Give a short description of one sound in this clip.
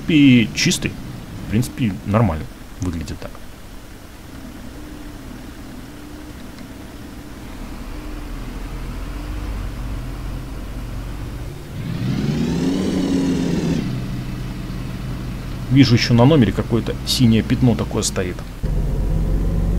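A bus engine rumbles steadily at idle.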